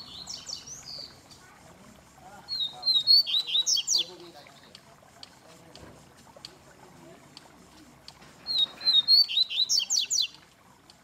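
A caged songbird sings loud, quick whistling phrases in bursts.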